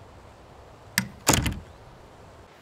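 A door shuts with a bang.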